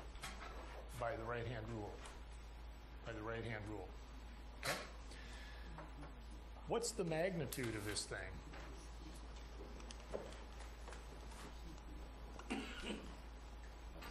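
A man speaks calmly in a lecturing tone, close to a microphone.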